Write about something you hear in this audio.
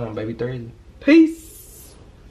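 A young woman exclaims loudly up close.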